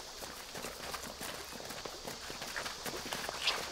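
Several people run across pebbles.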